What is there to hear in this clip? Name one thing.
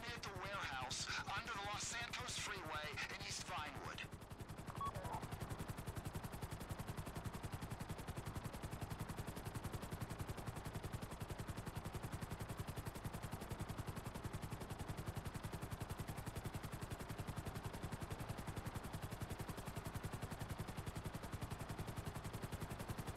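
A helicopter's rotor blades thump rapidly and steadily overhead.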